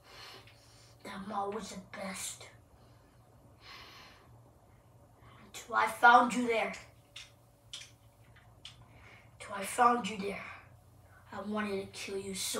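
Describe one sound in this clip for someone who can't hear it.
A young boy talks with animation nearby.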